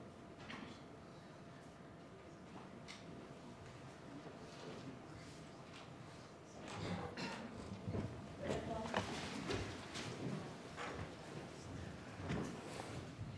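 A crowd of people murmurs in a room, growing louder.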